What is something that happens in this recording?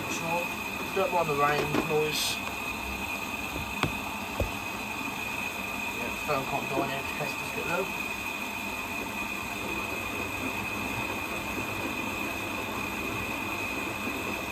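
Water and laundry slosh inside a washing machine drum.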